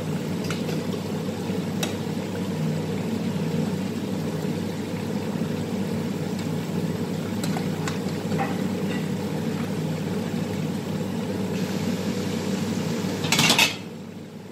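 A metal spatula scrapes and knocks against a frying pan.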